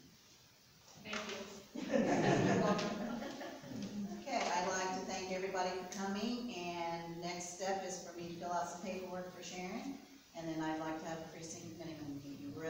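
A middle-aged woman speaks calmly in a room.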